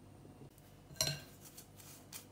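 A metal spoon scrapes against a metal sieve.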